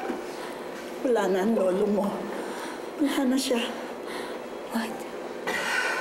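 An older woman speaks with emotion, close by.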